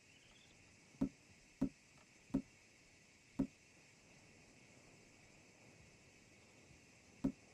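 Soft menu thumps sound as a selection changes, several times.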